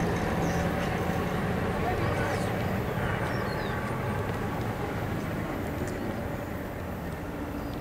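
Two runners' footsteps patter on pavement, moving away.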